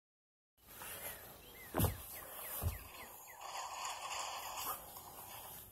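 A plush toy rustles and bumps against the microphone.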